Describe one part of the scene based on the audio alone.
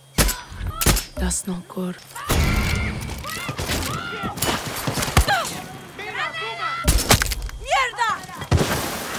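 Rifle shots crack loudly, one after another.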